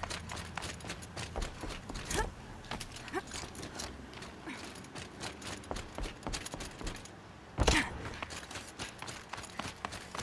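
Footsteps crunch over rocky ground.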